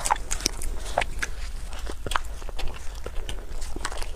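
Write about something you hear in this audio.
A young woman bites into crispy fried food with a loud crunch.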